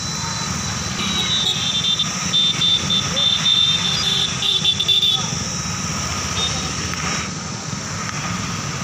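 Motorcycle engines drone steadily as a line of riders passes close by.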